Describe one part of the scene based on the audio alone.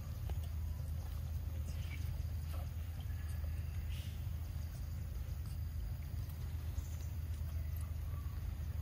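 Monkeys chew and smack on soft fruit close by.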